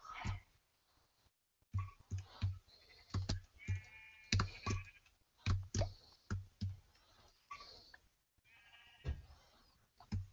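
Soft keyboard taps click in quick succession.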